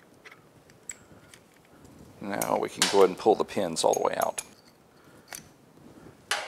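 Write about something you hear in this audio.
Metal tools click and scrape against a brake caliper.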